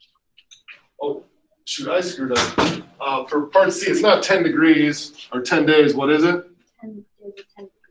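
A man lectures close by.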